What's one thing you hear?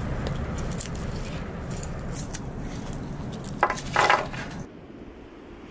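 Dry garlic skins crackle and rustle as fingers peel them.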